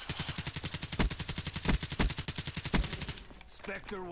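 Rapid gunfire cracks in quick bursts.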